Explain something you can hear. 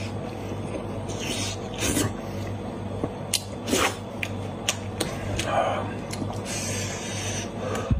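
A man chews and smacks his lips loudly close to a microphone.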